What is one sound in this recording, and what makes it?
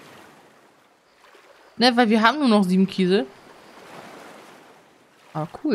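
Water splashes softly as a swimmer paddles through it.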